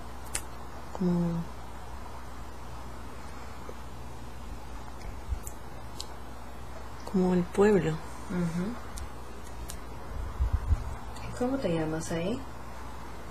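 A young woman speaks softly and haltingly, close to the microphone.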